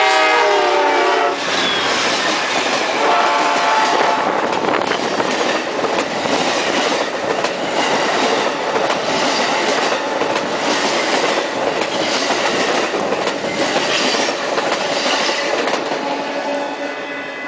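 A passenger train rushes past close by with a loud roar.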